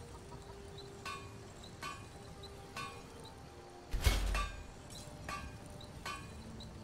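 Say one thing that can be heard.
A hammer strikes metal with short ringing clangs.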